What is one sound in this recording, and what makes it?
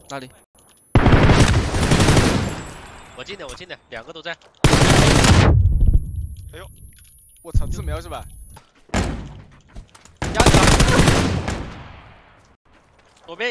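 Gunfire from a video game rattles in loud bursts.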